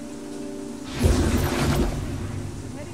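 A shield device powers up with a loud whooshing burst.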